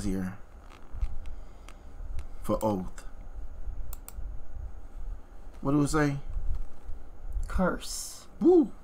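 A man speaks calmly in short bursts, close to a webcam microphone.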